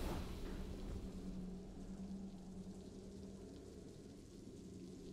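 A triumphant game fanfare rings out and slowly fades.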